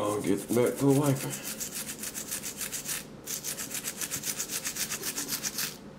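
A toothbrush scrubs quickly against a metal tooth grill.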